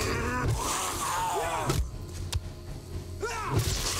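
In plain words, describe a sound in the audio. A zombie snarls and groans close by.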